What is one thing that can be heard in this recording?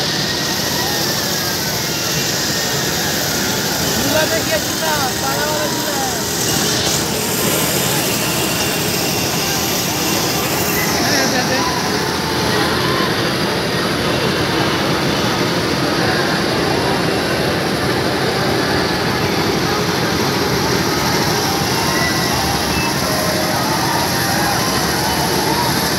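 A large crowd chatters and shouts noisily outdoors.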